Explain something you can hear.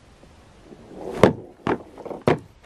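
A wooden canoe thumps onto the ground.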